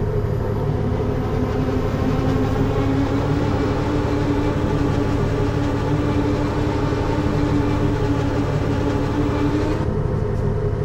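A train's motor hums, rising in pitch and then stopping.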